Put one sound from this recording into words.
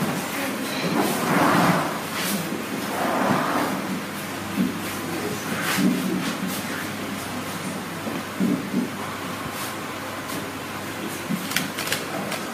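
Clothes rustle as a man handles and shakes them out.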